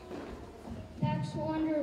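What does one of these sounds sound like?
A large children's choir starts singing together.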